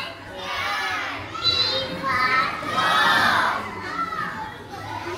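A young girl speaks loudly into a microphone in an echoing room.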